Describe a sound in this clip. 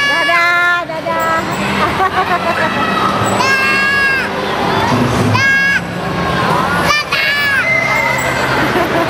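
Young children squeal and shout excitedly close by.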